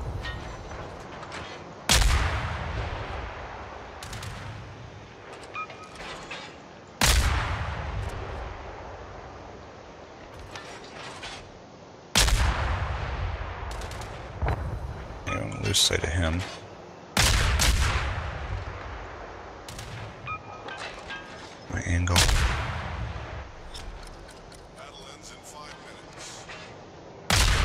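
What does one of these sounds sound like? Shells explode with sharp bangs.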